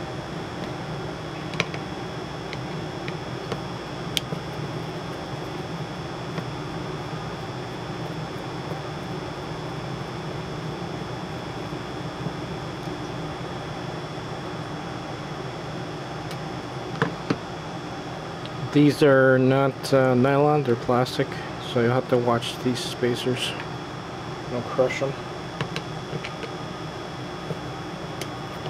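A screwdriver scrapes and clicks against a small metal part.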